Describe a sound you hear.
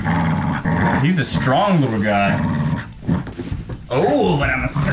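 A man talks playfully up close.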